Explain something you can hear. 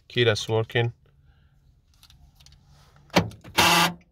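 Keys jingle as a key is slid into an ignition.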